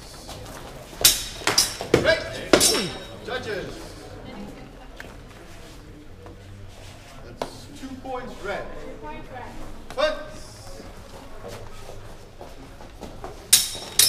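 Sword blades clash sharply in quick strikes.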